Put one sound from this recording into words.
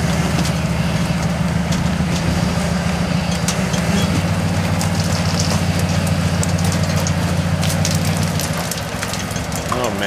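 Large tyres grind and scrape over rock.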